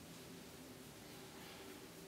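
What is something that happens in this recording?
A brush sweeps softly across skin.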